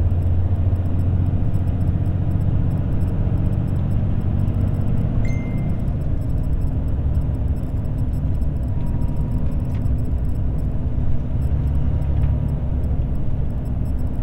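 Tyres roll and hum on the road surface.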